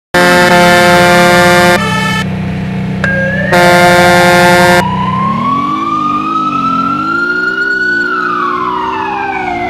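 A truck engine idles and then revs up as the truck speeds off.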